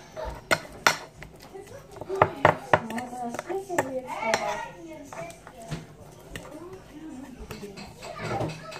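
Hands rustle and crunch through a bowl of popcorn.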